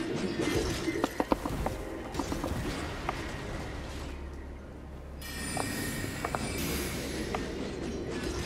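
Sharp metallic impacts ring out in quick succession.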